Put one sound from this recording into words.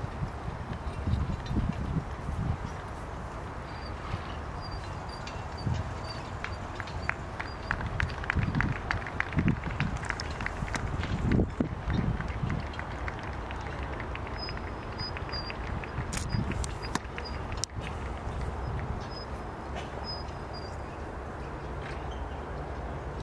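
Carriage wheels crunch over sand.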